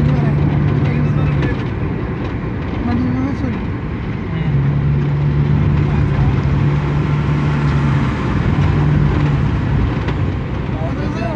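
A vehicle's engine hums steadily from inside as it drives along.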